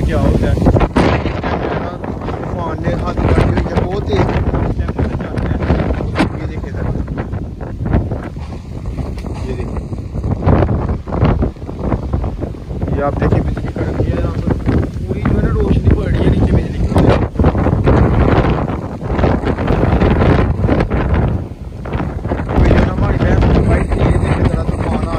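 Strong wind roars and buffets the microphone outdoors.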